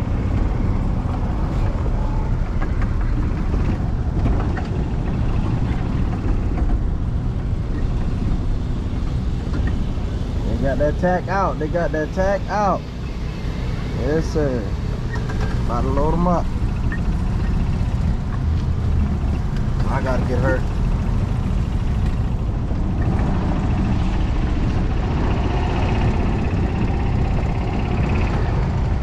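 A small cart motor hums and rumbles steadily over rough ground.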